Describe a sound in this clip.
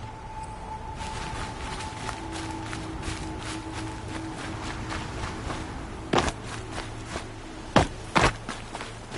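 Footsteps run quickly through grass and over stone.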